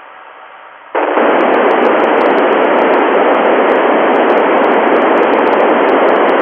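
Radio static hisses loudly and steadily from a loudspeaker.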